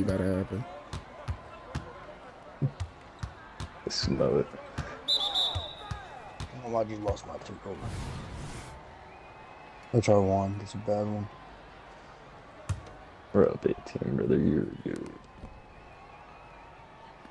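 A basketball bounces on a court.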